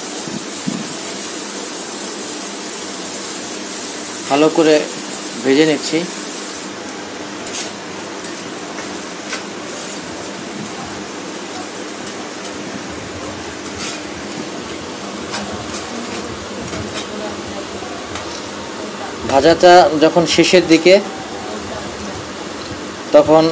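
A metal spatula scrapes and taps against a metal pan.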